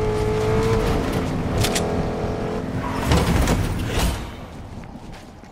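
Footsteps run quickly across crunching snow.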